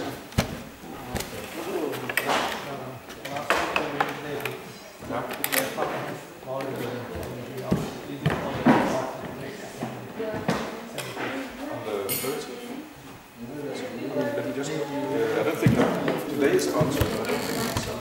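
Footsteps thud on a wooden floor close by.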